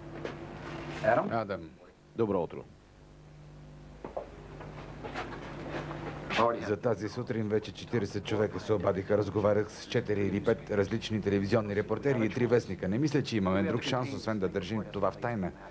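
A middle-aged man speaks calmly up close.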